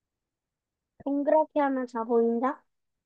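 A young child speaks with animation over an online call.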